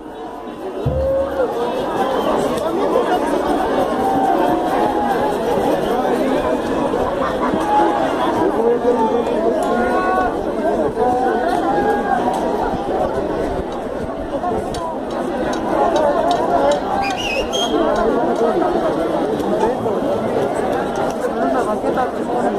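A large outdoor crowd chatters and shouts loudly all around.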